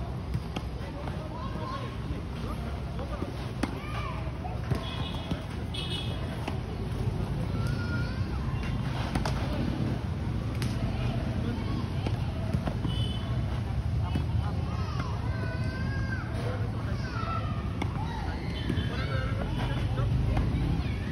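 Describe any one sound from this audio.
Tennis rackets strike a ball with sharp pops.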